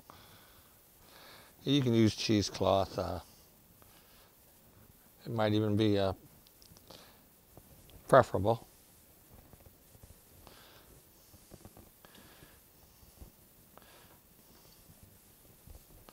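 A cloth rubs and squeaks against a glass jar.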